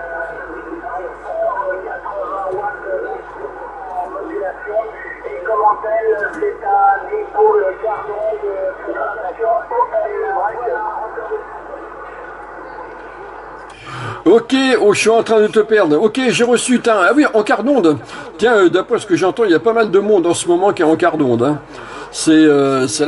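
Voices come through a radio loudspeaker with faint crackle.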